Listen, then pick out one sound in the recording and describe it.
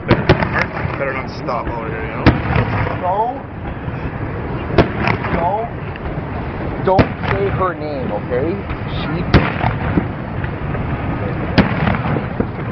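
Fireworks shells burst with sharp booms.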